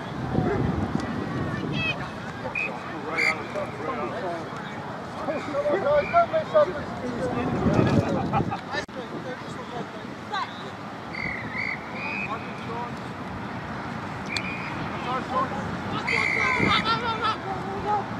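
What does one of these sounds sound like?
Spectators call out from the sideline of an open field.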